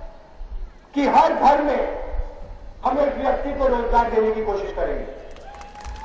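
A man speaks forcefully into a microphone, heard through loudspeakers outdoors.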